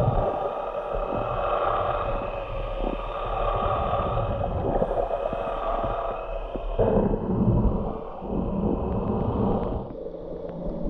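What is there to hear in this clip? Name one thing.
Air bubbles gurgle and rumble from a diver's breathing gear close by underwater.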